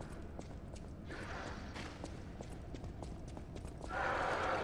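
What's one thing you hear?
Footsteps run over a stone floor.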